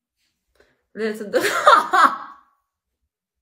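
A young woman laughs loudly close to a phone microphone.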